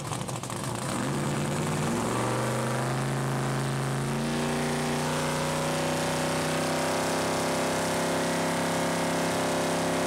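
A car engine revs up, rising in pitch and holding at a high drone.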